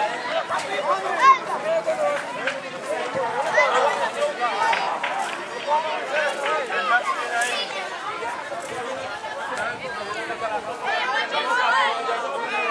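A crowd of young people chatter and shout outdoors.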